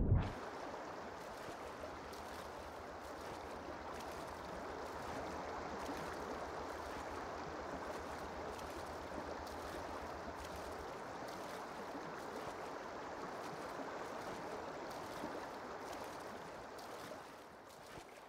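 Muffled water rushes and gurgles as a swimmer moves underwater.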